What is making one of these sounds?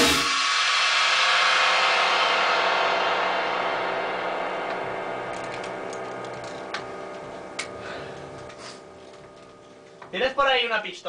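Cymbals ring out loudly after a crash and slowly fade away.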